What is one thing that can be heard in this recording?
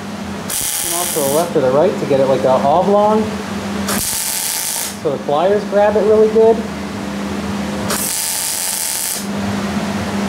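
An arc welder crackles and hisses in short bursts.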